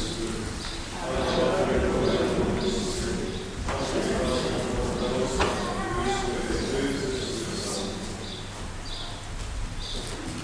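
A group of men sing a slow chant in a large echoing hall.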